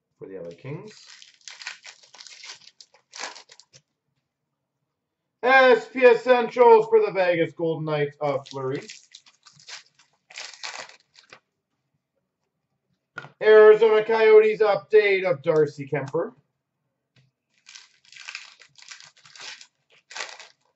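Plastic wrapping crinkles and trading cards rustle in someone's hands.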